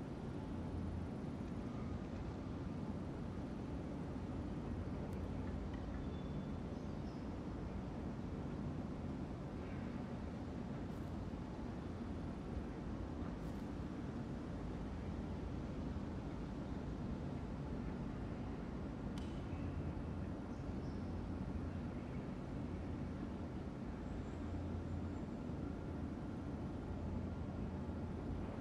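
A ceiling fan whirs with a steady low hum.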